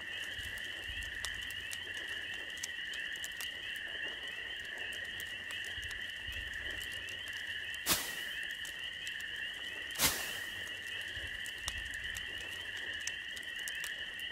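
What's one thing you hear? A campfire crackles and pops softly.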